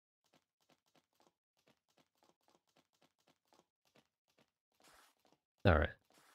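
Footsteps patter quickly and faintly.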